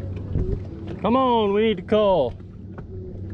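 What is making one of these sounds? A fishing reel's drag whines briefly as line pulls out.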